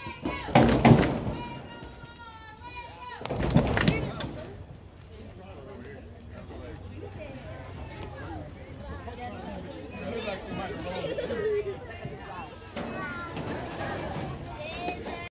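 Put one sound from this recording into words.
Young boys chatter and call out outdoors.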